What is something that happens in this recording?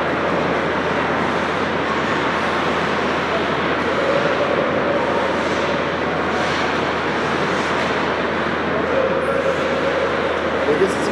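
Ice skates scrape and glide across ice.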